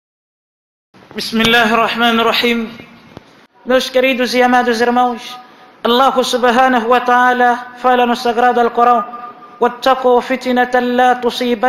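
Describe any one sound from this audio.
A man chants melodically into a microphone in a large echoing hall.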